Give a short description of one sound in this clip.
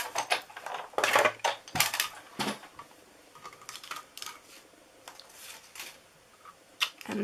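Plastic plates clatter and knock as they are handled.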